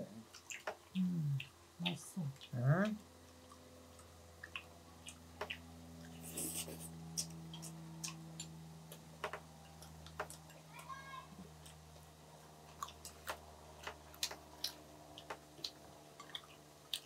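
Chopsticks click and tap lightly against dishes.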